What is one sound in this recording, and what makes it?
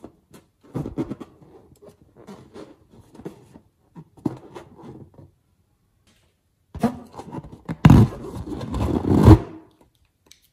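Fingers squeeze and rub a rubber balloon, making it squeak.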